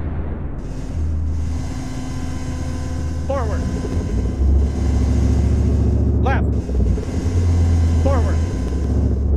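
A heavy vehicle engine rumbles steadily.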